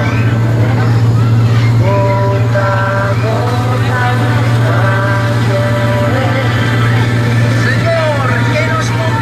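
A small vehicle motor drones steadily.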